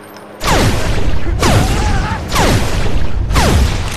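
A punch lands on a man.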